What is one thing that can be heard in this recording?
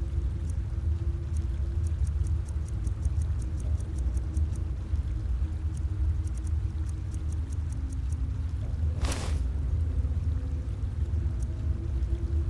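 Soft menu clicks tick in quick runs.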